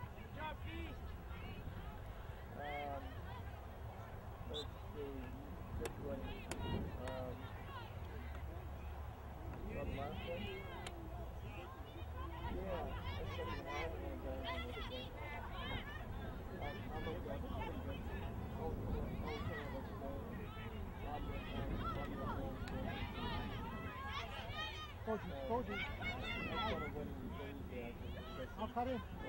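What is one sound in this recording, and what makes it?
Spectators on the sidelines shout and cheer throughout, outdoors.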